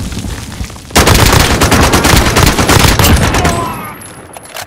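A rifle fires loud shots in quick succession.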